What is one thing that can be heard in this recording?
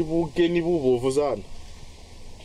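A man speaks in a loud, sing-song voice nearby.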